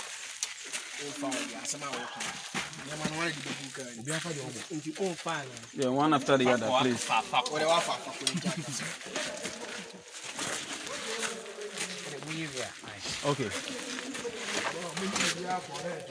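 A young man talks close by with animation.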